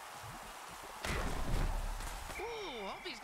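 Armoured players crash together with a heavy thud.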